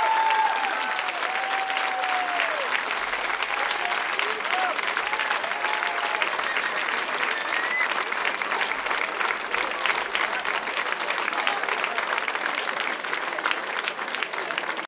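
A large crowd cheers and whistles loudly.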